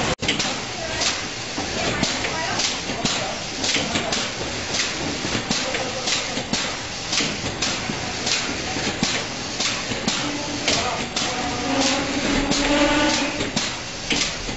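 Robotic arms click as they pick up items.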